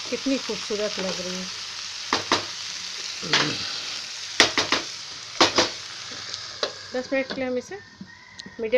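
Vegetables sizzle steadily in a hot pan.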